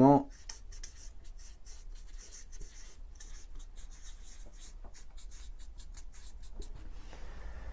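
A marker squeaks across a paper board.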